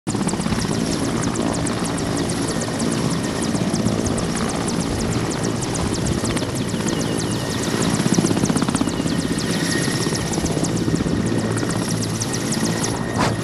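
A helicopter's rotor blades thump rapidly and loudly close by.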